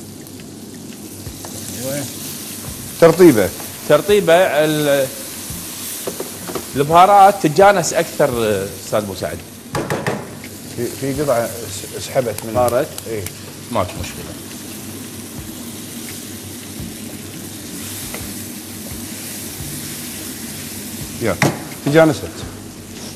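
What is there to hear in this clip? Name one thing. Food sizzles in a pan.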